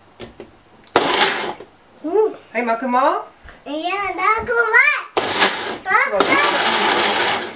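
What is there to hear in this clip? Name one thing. A blender whirs loudly in short bursts.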